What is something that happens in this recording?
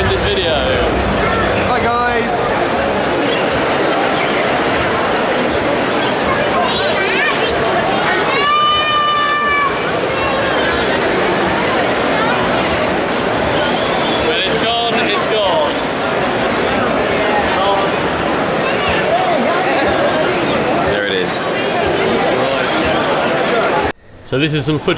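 A crowd chatters in a large, busy hall.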